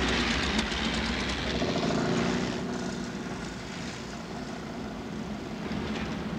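Old engines rumble and rattle as vehicles drive past.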